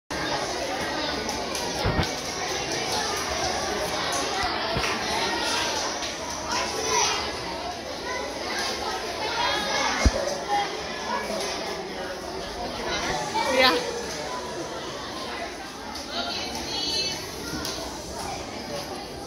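A large crowd of children chatters in an echoing hall.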